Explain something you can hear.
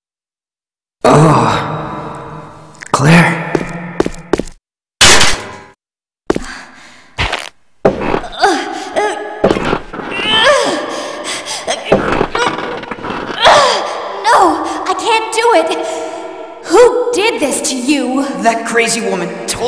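A woman speaks with concern, close by.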